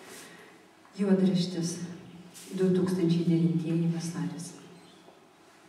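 A woman reads aloud clearly into a microphone, heard through a loudspeaker.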